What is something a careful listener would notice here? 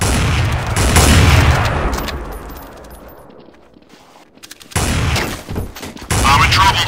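Rifles fire in loud bursts of gunshots.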